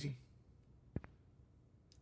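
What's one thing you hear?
A cue ball clicks against another ball on a snooker table.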